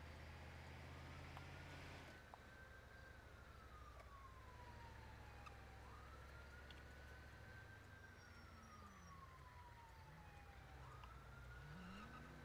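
An ambulance siren wails, rising and falling slowly.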